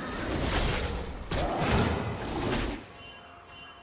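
Loud fighting sound effects burst and clash in a video game.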